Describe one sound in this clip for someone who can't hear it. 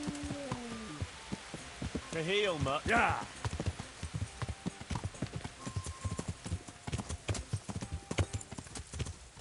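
A horse's hooves clop steadily on a dirt track.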